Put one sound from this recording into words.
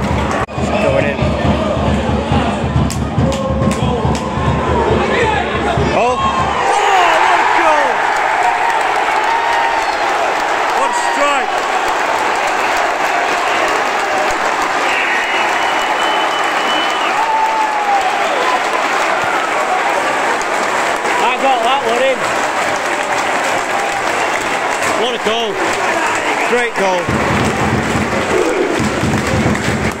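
A large football stadium crowd roars and cheers close by.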